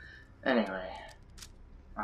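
A pistol magazine clicks out during a reload.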